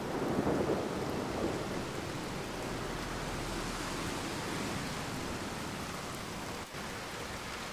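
Steady rain falls and patters on a window.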